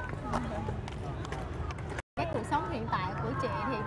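Inline skate wheels roll and scrape on pavement.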